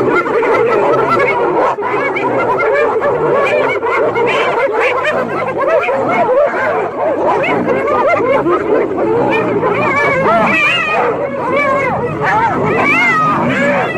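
A lion snarls and growls.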